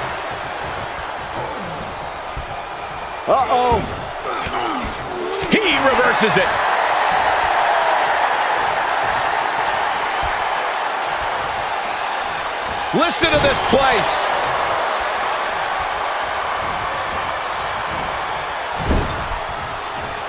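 A large arena crowd roars and cheers steadily.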